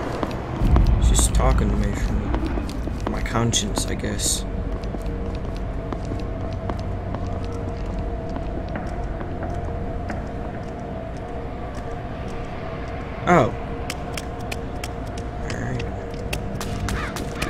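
Quick soft footsteps patter along.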